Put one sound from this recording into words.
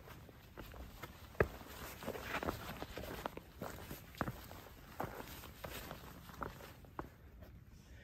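Footsteps crunch on dry leaves and rocky ground.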